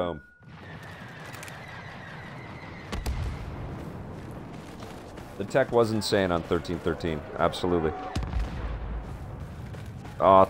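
Blaster rifles fire in quick bursts.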